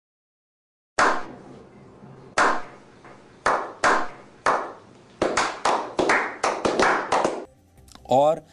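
Several men clap their hands, slowly at first and then faster.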